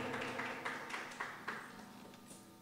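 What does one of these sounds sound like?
A tambourine jingles and shakes.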